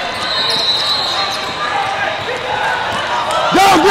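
A basketball thumps on the court.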